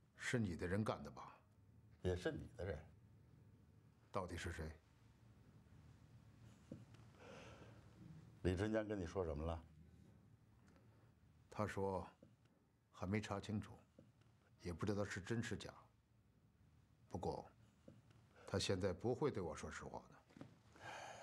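A middle-aged man speaks tensely and questioningly, close by.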